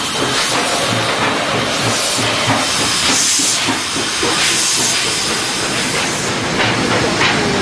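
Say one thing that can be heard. Steam hisses loudly from a locomotive's cylinders.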